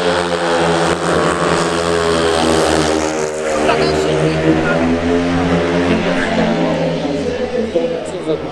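Motorcycle engines roar loudly as bikes race around a track.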